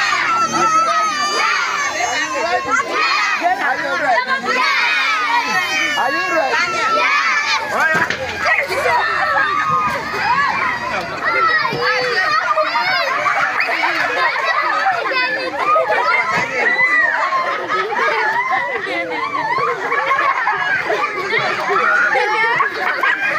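A crowd of children shout and chatter excitedly close by.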